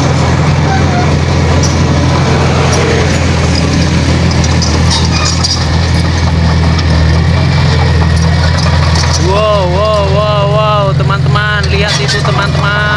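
A bulldozer blade scrapes and pushes loose dirt and rocks.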